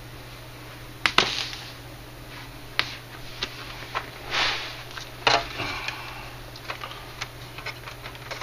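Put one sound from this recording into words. Hands handle a plastic model on newspaper, with knocks and rustles.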